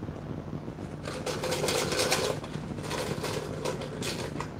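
Contents rattle and swish inside a plastic jar being shaken.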